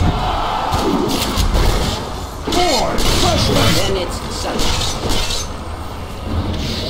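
Magic spells whoosh and crackle in bursts.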